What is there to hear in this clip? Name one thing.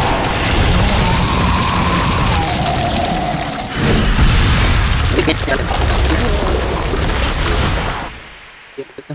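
A loud rumbling roar fills a game scene.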